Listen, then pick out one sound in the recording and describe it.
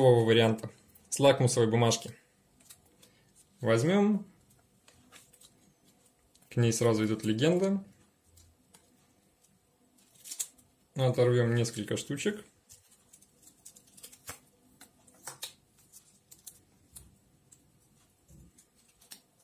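Paper packets rustle and crinkle between fingers.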